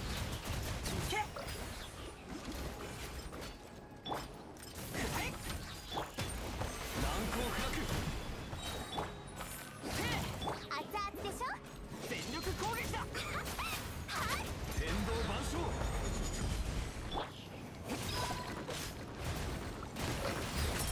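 Sword slashes and magic blasts strike with sharp bursts.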